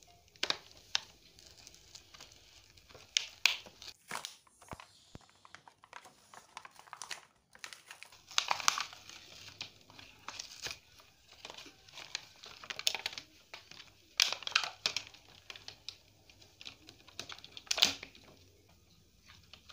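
Plastic packaging crinkles and rattles as a child handles a toy box.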